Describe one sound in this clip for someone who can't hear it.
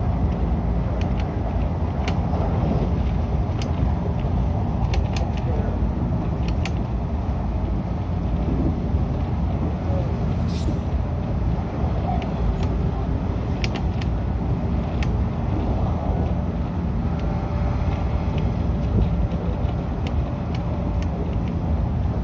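A train's wheels click now and then over rail joints.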